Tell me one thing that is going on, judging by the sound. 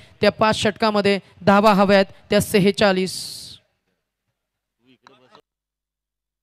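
A man commentates with animation through a microphone.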